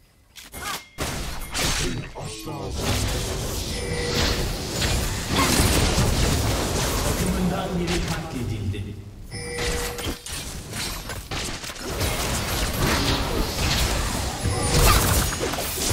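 Game spells blast and hits clash in a busy fight.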